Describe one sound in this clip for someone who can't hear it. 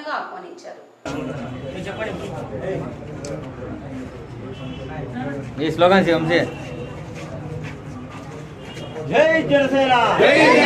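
A crowd of men murmur and talk in a room.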